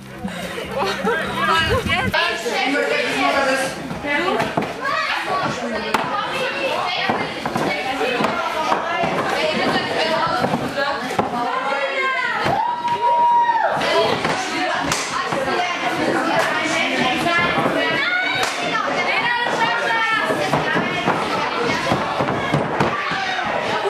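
A crowd of young people chatters, laughs and cheers loudly.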